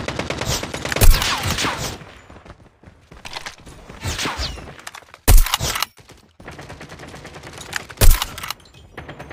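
A rifle fires loud, sharp shots a few times.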